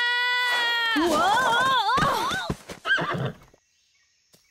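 A young woman exclaims with a wavering, animated voice.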